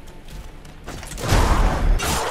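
A sword slashes and hits with a wet thud.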